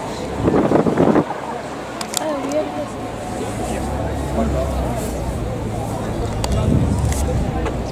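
Wind rumbles across the microphone.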